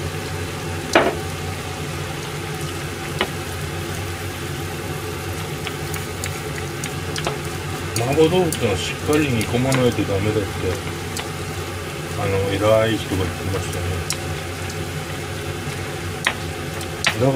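A metal ladle clinks against a pan now and then.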